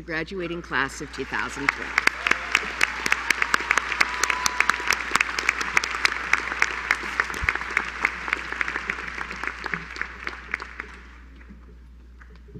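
A large audience applauds loudly.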